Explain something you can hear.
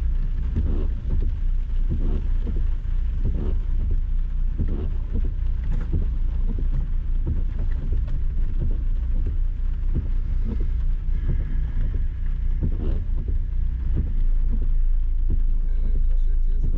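Rain patters on a windshield.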